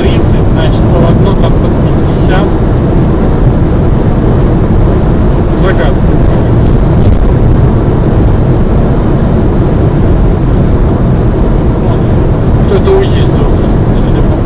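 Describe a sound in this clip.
A car drives fast along a highway, its engine and tyres rumbling steadily.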